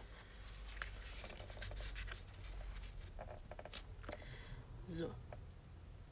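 Hands tap and press paper flat on a board.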